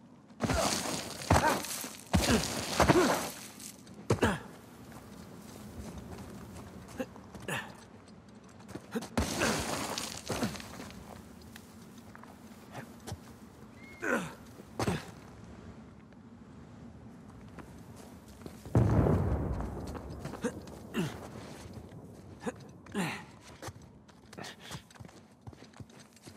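Running footsteps crunch on loose gravel.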